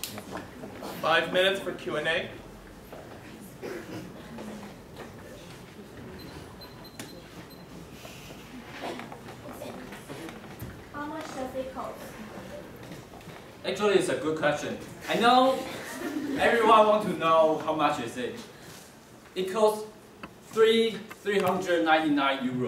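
A young man speaks to an audience, in a room with a slight echo.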